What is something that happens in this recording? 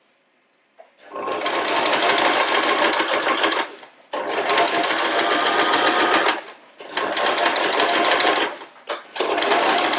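A sewing machine runs in fast bursts, its needle rattling rapidly, with short pauses between.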